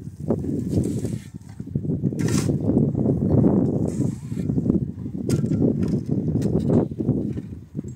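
Gravel pours into a metal wheelbarrow.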